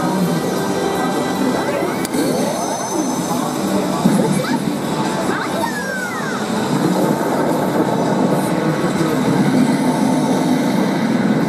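Game music and sound effects play loudly through a loudspeaker.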